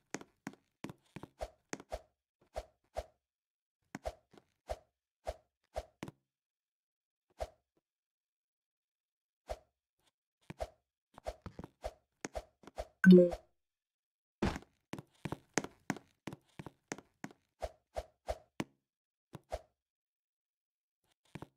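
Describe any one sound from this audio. Quick footsteps tap in short bursts.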